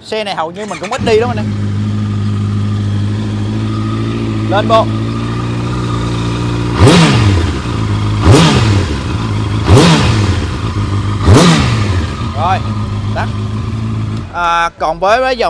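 A motorcycle engine starts and idles with a deep rumble.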